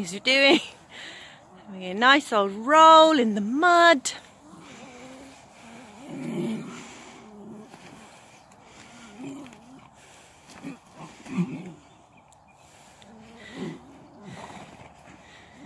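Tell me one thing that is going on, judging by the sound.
A horse rolls on its back on soft earth.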